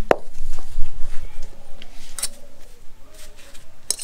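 A fork scrapes against a metal bowl.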